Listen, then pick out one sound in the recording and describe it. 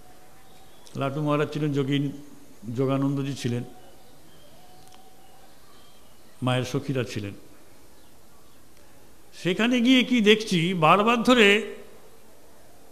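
A middle-aged man speaks slowly and deliberately into a microphone, in short phrases with pauses.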